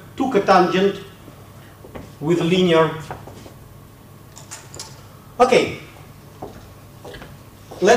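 A man speaks in short bursts through a microphone, lecturing.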